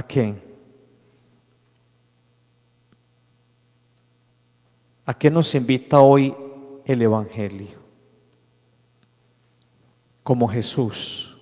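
A man chants in a sung voice through a microphone in a large echoing hall.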